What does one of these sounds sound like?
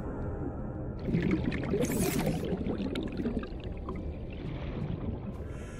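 Water gurgles and swooshes underwater as a swimmer moves.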